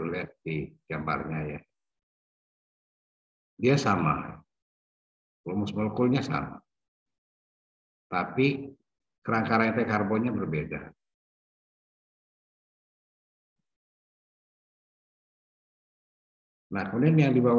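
A middle-aged woman speaks calmly over an online call, in short phrases with pauses.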